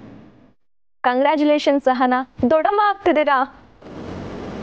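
A woman speaks brightly and quickly, close by.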